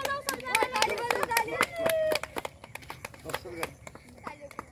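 Children clap their hands in a quick rhythm.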